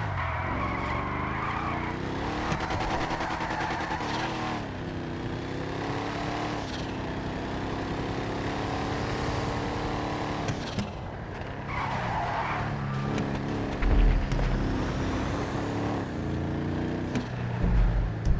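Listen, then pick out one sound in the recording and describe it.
A car engine roars and shifts gears as the car speeds along.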